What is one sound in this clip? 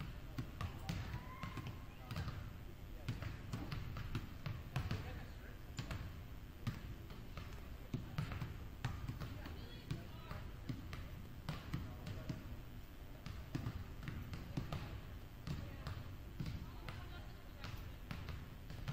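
Basketballs bounce on a hard floor in a large echoing gym.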